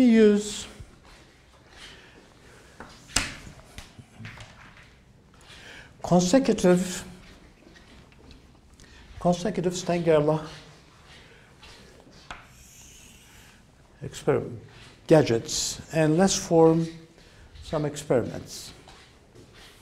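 An elderly man lectures in bursts.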